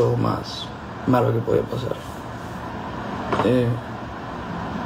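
A young man speaks calmly and close to a phone microphone.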